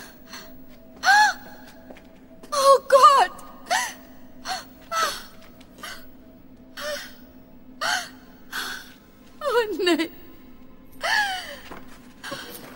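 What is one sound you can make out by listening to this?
A young woman cries out in distress nearby.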